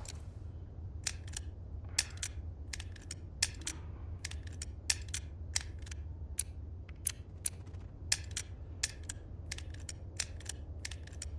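A metal lock clicks sharply as its rings are turned.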